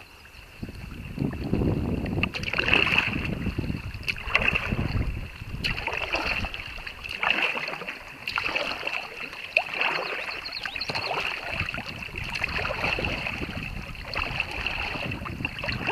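Paddles splash rhythmically in the water.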